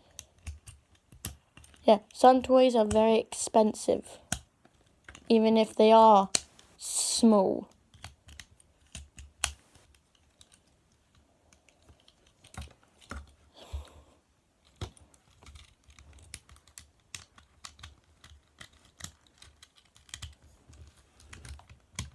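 Plastic parts click and rattle as hands handle a toy.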